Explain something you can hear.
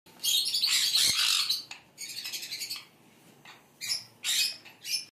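A baby bird chirps loudly and shrilly in repeated bursts.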